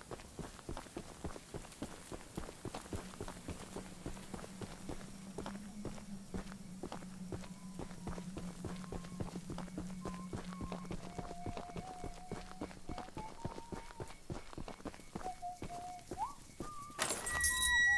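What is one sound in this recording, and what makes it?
Footsteps crunch steadily on gravel and dirt.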